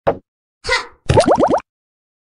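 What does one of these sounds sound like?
Cartoon bubbles pop in a mobile game with quick rising chimes.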